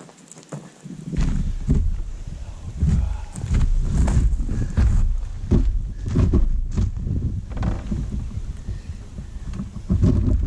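Footsteps crunch on gravel close by.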